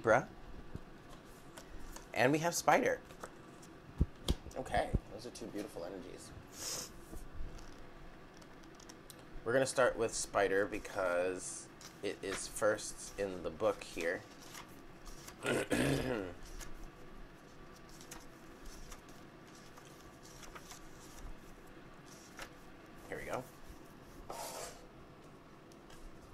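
Playing cards are placed with soft slaps onto a table.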